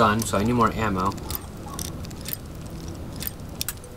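A metal pick scrapes and clicks inside a lock.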